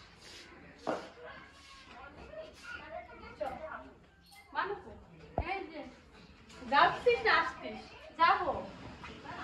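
A woman speaks nearby in an echoing room.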